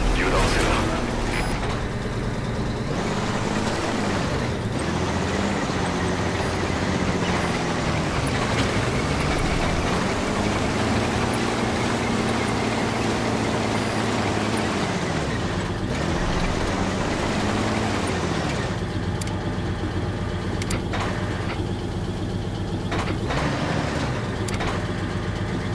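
A heavy tank engine rumbles and revs up and down.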